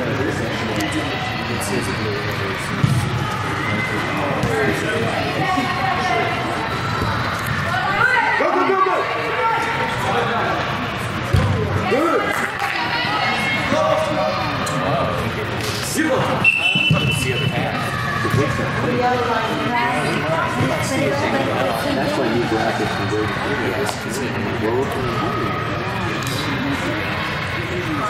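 Young players shout and call out across a large echoing indoor hall.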